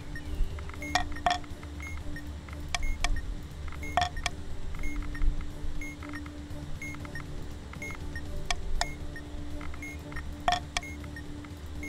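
Game pieces click sharply as they are moved and captured.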